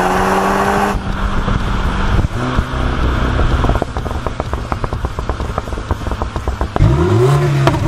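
A car exhaust burbles and crackles as the engine eases off.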